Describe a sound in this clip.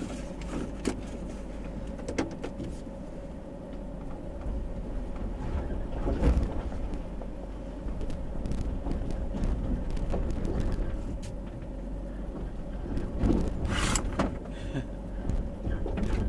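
A car rattles and bumps over a rough dirt track.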